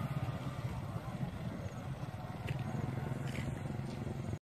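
A motorbike engine hums at a distance and draws nearer.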